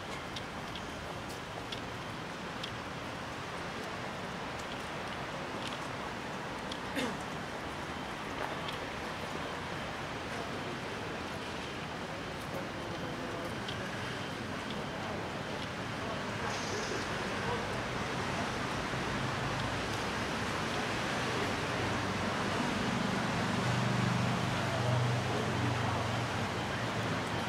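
Light rain patters steadily outdoors.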